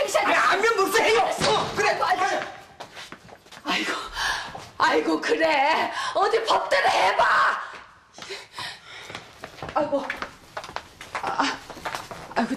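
An older woman shouts loudly and excitedly nearby.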